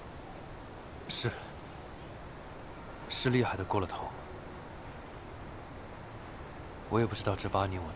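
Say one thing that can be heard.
A young man answers quietly, close by.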